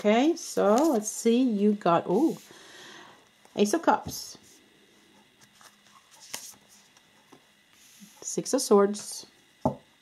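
A playing card is laid down softly on a cloth-covered table.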